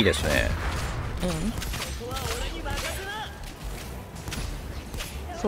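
Sharp blasts and slashing effects crackle rapidly in a game battle.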